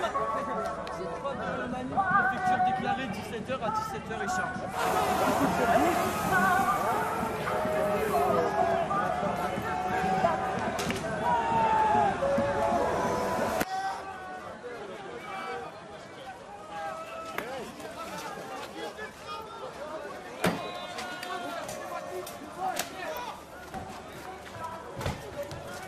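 A crowd shouts and chants outdoors.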